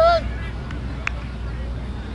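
A cricket bat strikes a ball in the distance.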